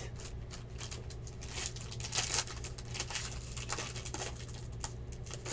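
A plastic wrapper crinkles as it is torn open.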